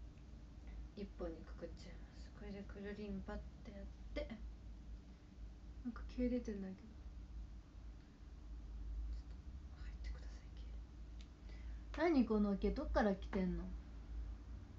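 A young woman talks softly and casually close to a microphone.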